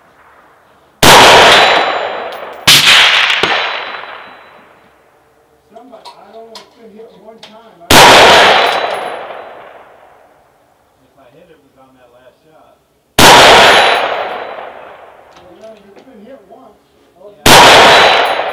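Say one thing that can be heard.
A rifle fires loud single shots outdoors, each followed by a rolling echo.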